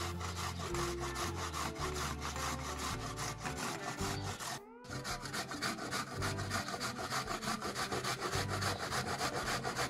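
A grater rasps rhythmically against a vegetable.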